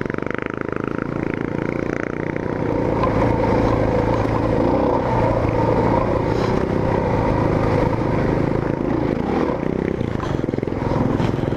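Tyres crunch and rattle over loose rocks and dirt.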